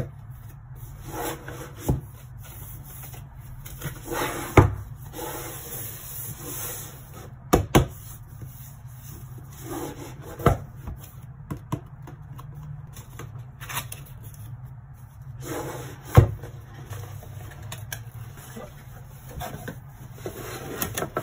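Cardboard packaging rustles and scrapes as hands handle a box.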